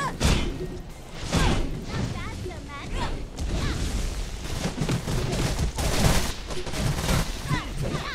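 Video game explosions burst loudly.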